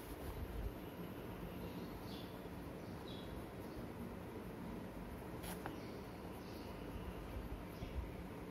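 A pen scratches softly on paper as it writes.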